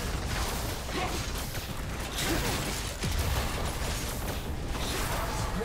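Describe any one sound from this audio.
Game spell effects whoosh and crash in a fast battle.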